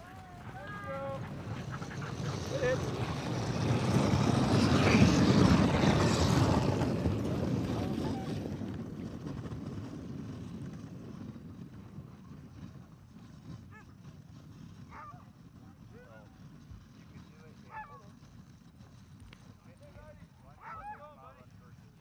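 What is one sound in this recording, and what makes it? Sled dogs yelp and bark excitedly.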